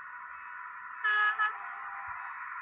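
A train horn blows twice in short blasts.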